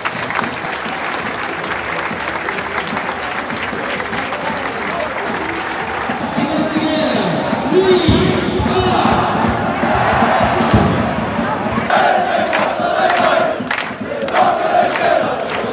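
A large stadium crowd roars and cheers loudly throughout.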